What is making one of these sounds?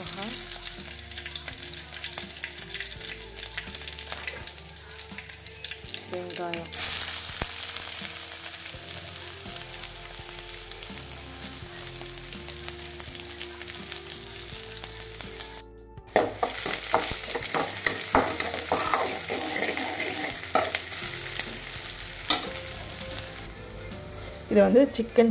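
Oil sizzles softly in a pan.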